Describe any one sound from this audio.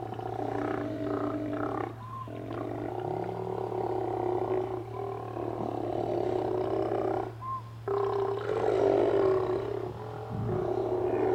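Sea lions groan and roar close by.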